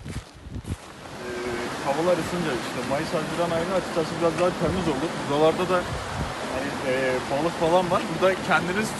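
A young man talks close by with animation.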